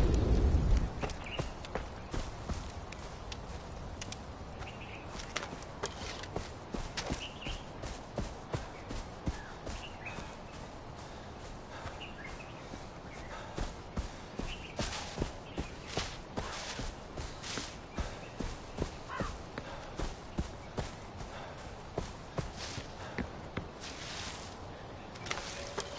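Footsteps rustle and crunch through grass and brush at a steady pace.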